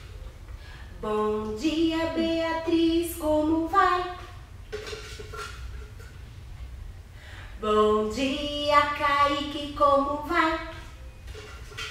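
A woman sings in a lively, playful voice.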